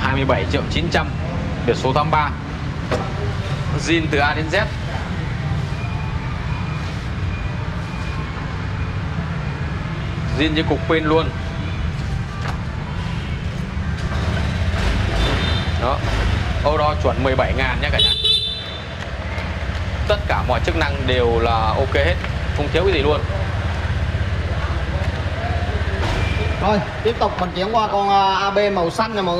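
A man talks calmly and with animation, close by.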